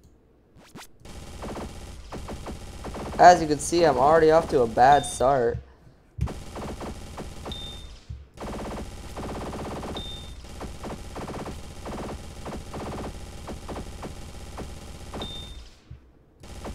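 Rapid electronic gunfire rattles on and off.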